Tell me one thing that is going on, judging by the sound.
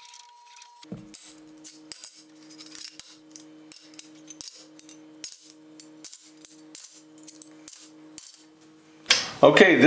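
Metal bars clink as they are laid on a metal surface.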